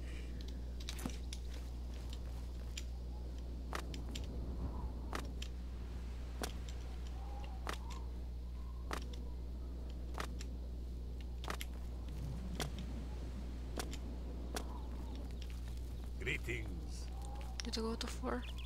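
Footsteps tread steadily on stone paving.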